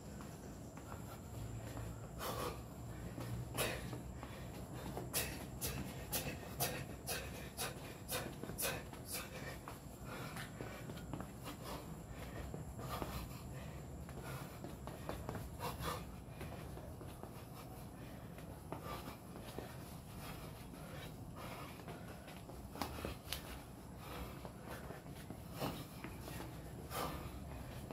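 Feet shuffle and tap on a hard floor outdoors.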